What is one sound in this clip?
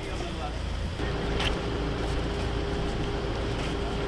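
A crowd of men murmurs nearby outdoors.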